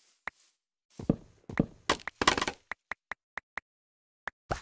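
Blocks crack and crumble as they are broken with quick knocks.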